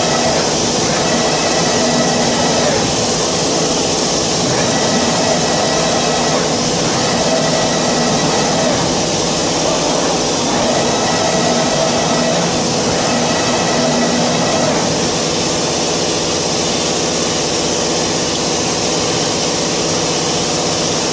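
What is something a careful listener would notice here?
A machine whirs and hums steadily in a large echoing hall.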